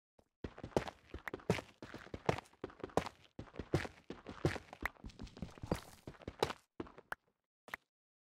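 A pickaxe chips rapidly at stone with quick crunching knocks.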